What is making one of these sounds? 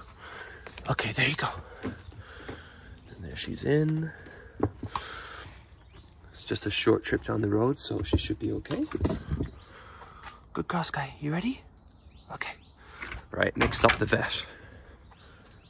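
A plastic crate door rattles and clicks shut.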